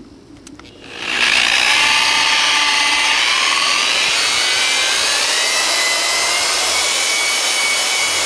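An electric polisher whirs loudly and steadily.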